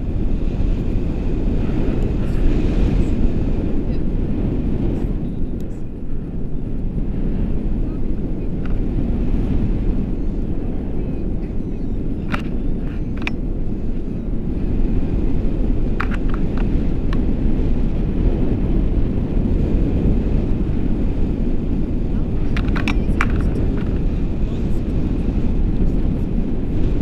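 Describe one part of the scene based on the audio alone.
Strong wind roars steadily past a microphone outdoors.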